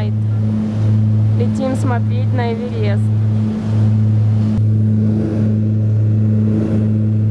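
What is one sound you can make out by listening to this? Propeller engines drone loudly and steadily inside an aircraft cabin.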